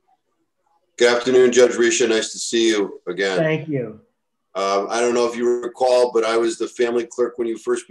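A second man speaks with animation over an online call.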